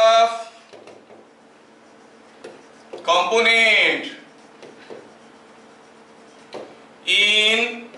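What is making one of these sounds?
An elderly man speaks in drawn-out phrases, with pauses between them.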